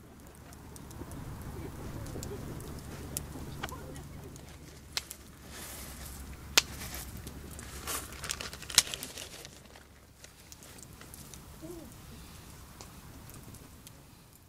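Cloth rustles as hands smooth and fold it.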